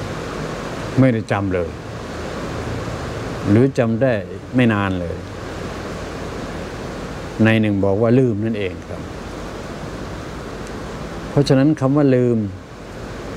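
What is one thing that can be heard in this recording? An elderly man speaks slowly and calmly into a microphone, in short phrases with long pauses.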